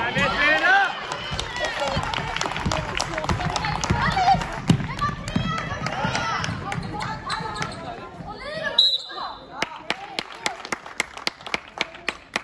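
A basketball bounces repeatedly on a hard floor.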